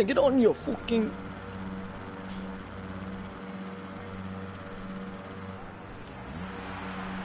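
Motorbike engines idle with a steady low hum.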